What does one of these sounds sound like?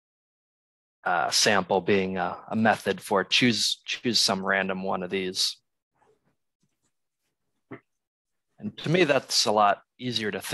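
A young man speaks calmly and close to a microphone, in short bursts with pauses.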